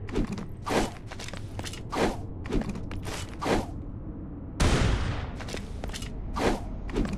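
Blades whoosh and strike in quick fighting swings.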